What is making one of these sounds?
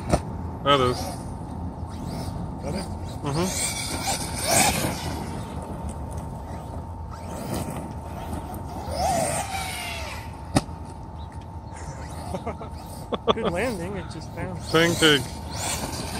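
A small electric motor whines, revving up and down.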